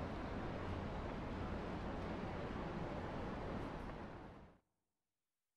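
Busy street noise hums steadily and then fades out.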